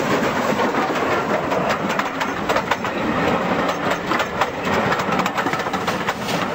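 A model train rumbles along the track, its wheels clicking over rail joints.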